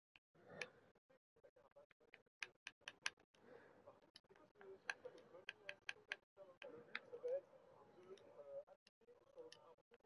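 Short clicks sound as game menu items are picked.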